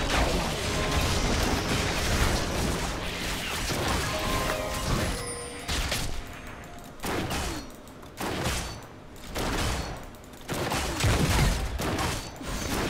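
Fast video game combat sounds whoosh and clash in quick bursts.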